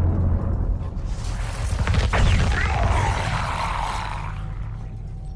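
Electricity crackles loudly.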